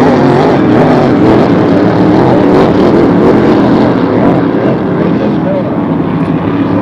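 Racing boat engines roar loudly across the water.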